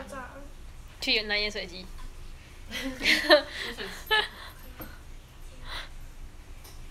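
A young person laughs close by.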